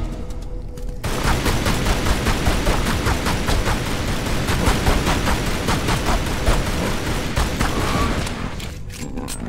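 Pistols fire in rapid bursts, echoing in a large stone hall.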